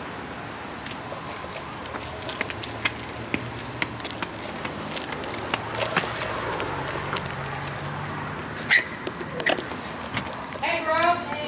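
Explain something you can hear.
Footsteps tap on concrete steps and pavement.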